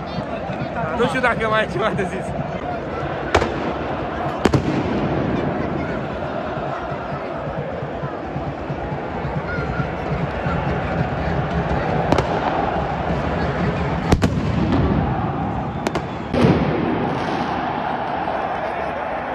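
A large stadium crowd roars and chants.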